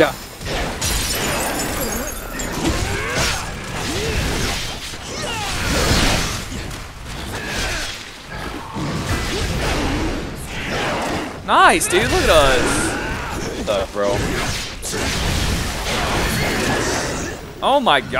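Swords clash and blows thud in a fight.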